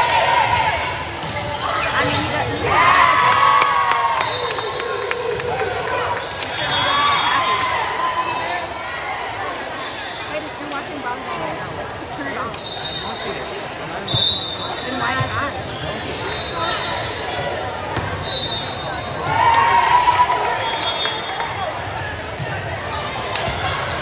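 A volleyball thumps against hands and arms.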